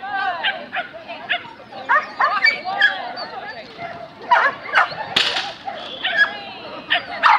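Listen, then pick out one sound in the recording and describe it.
A woman calls out commands to a dog with animation, outdoors.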